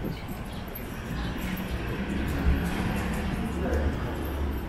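A cart rattles as it is pushed past.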